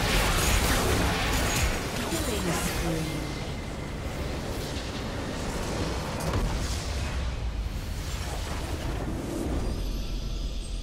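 Game spell effects crash and boom in a busy fight.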